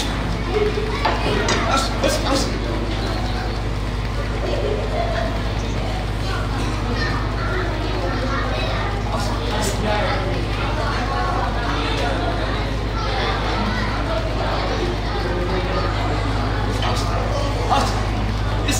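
A crowd of men murmurs and talks nearby.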